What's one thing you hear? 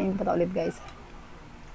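A young woman hums with delight close by.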